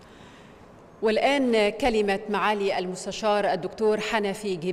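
A young woman speaks clearly into a microphone, heard through loudspeakers in a large hall.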